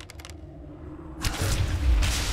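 An arrow is loosed from a bow with a sharp twang.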